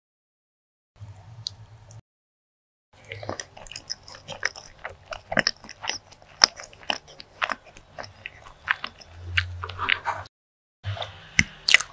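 A woman chews and smacks her lips loudly and close up.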